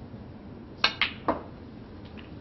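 Snooker balls clack against each other.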